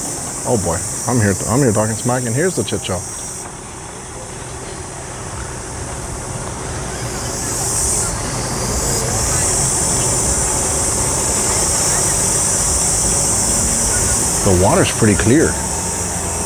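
A boat motor hums low and steady close by.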